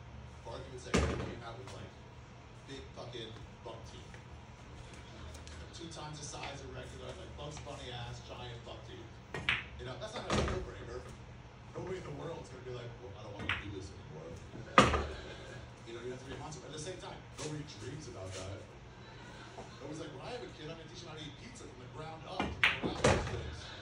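A cue strikes pool balls with sharp clacks.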